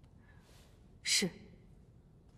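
A woman answers briefly and softly, close by.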